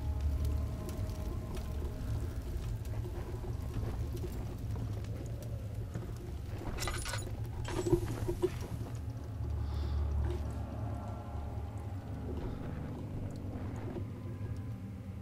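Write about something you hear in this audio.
A torch flame crackles and hisses softly.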